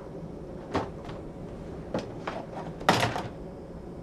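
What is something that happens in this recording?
A cabin door latch clicks and clunks nearby.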